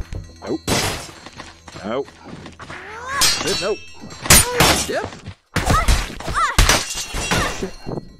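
A spiked club strikes with heavy thuds and clangs against a metal shield.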